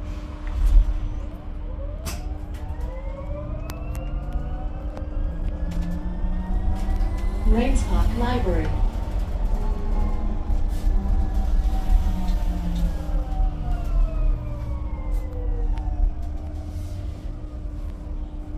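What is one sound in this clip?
Loose fittings rattle and click inside a moving bus.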